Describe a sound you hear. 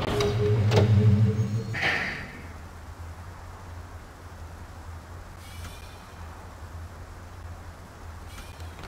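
A large fan turns with a low, steady hum.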